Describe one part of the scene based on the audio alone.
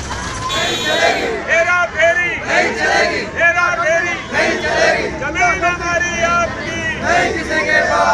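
A crowd of men chants and shouts slogans loudly nearby.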